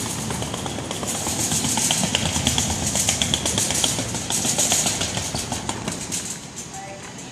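A wire cart full of balls rattles as it rolls across a hard floor.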